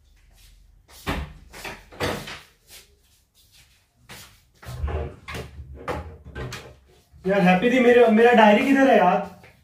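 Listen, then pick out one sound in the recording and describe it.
Footsteps thud across a floor.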